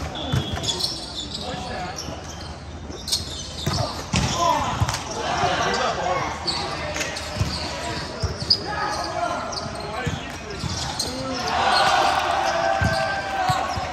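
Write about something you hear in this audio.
A volleyball thumps off players' arms and hands.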